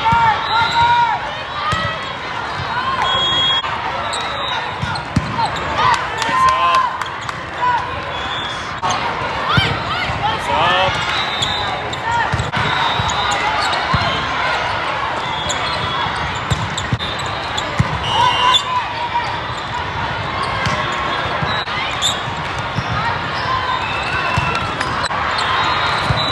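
Volleyballs thump off hands and arms in a large echoing hall.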